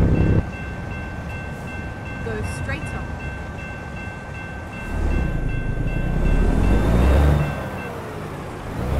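A railroad crossing bell rings.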